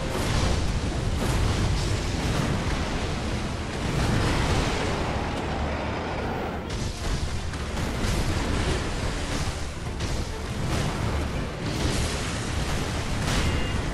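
Water splashes heavily as fighters thrash through it.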